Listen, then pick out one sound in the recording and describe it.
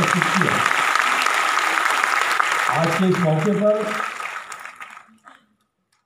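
A middle-aged man speaks through a microphone and loudspeakers in a large echoing hall.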